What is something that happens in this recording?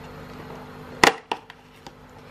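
A cardboard flap tears and snaps open.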